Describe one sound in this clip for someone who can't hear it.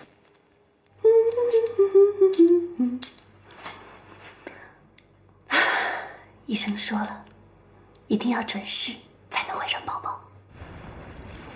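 A young woman speaks softly and happily, close by.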